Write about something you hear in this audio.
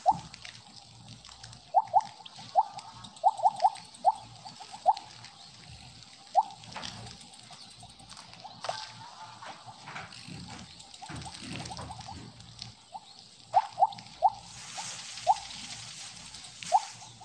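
Short bright blips chime again and again as a game snake swallows glowing pellets.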